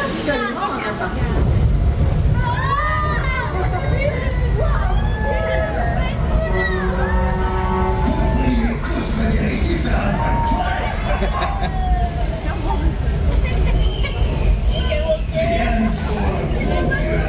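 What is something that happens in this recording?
A ride vehicle rumbles steadily along a track.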